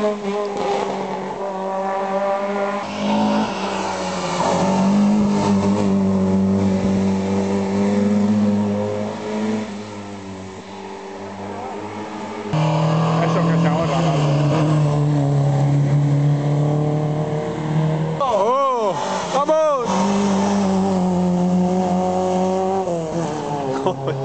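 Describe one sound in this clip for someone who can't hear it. Rally car engines roar and rev loudly as cars speed past.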